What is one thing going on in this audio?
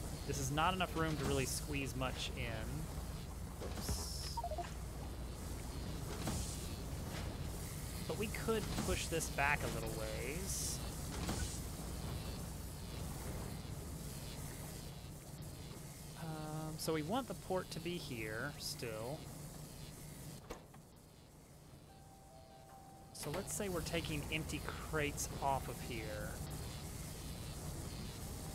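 A young man talks casually and with animation into a close microphone.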